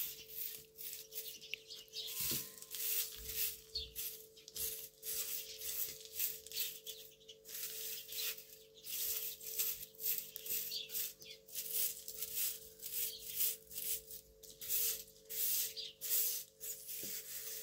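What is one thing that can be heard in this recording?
A broom sweeps a hard floor with quick, rhythmic scratchy strokes.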